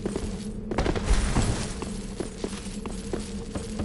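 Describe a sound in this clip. A burst of fire roars and crackles.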